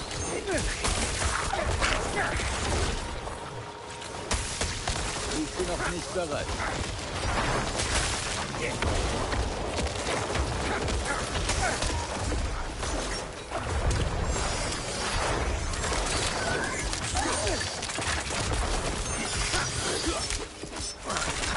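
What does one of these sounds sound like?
Spell blasts and weapon hits crash in a fast game battle.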